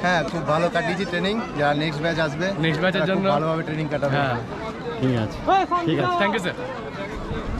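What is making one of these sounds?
A young man speaks cheerfully close by.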